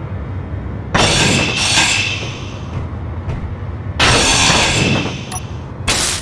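A power grinder whirs as it grinds metal.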